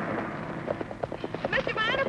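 A horse-drawn carriage clatters along a dirt road.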